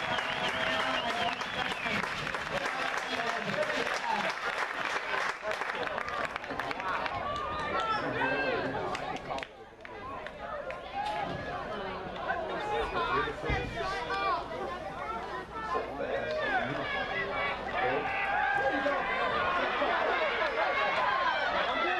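Young players on a sideline call out and shout.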